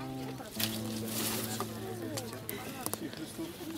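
A guitar is strummed, its chord ringing out.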